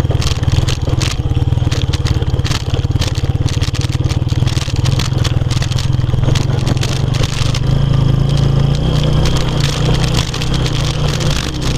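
Tyres rumble and crunch over a dirt track.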